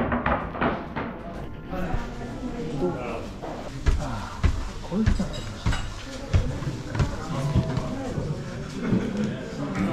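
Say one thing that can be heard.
A cup rattles on its saucer on a carried tray.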